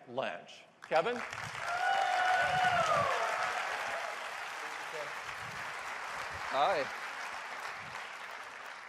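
A large audience applauds and cheers.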